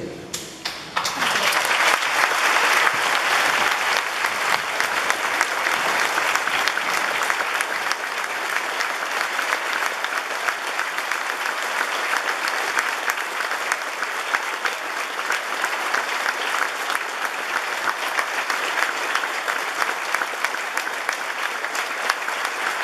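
A crowd claps and applauds steadily.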